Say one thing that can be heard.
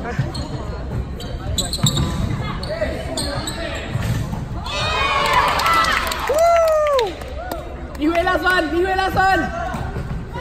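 A volleyball thuds against hands.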